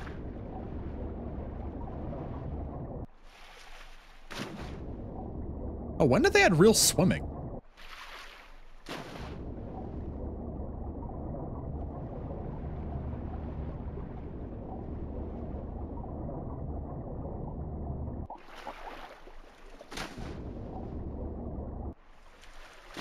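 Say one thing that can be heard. A low, muffled rumble of water is heard underwater.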